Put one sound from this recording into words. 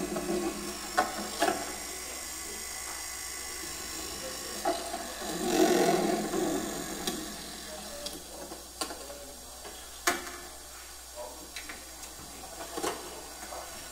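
Small objects click and knock on a table.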